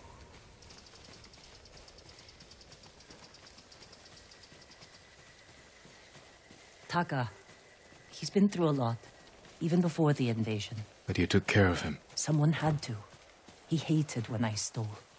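Footsteps rustle softly through tall grass.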